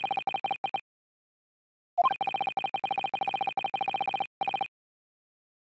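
Rapid high electronic blips tick as text types out.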